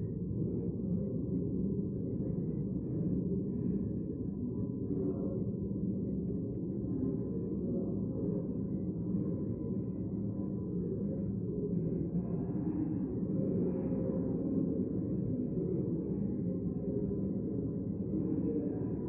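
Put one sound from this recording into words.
Many people murmur and chat quietly in a large echoing hall.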